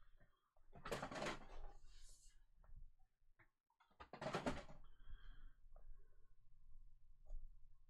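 A plastic card case clicks and rattles as it is handled.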